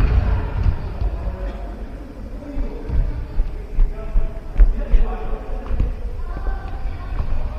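Men call out to each other during play, echoing in the hall.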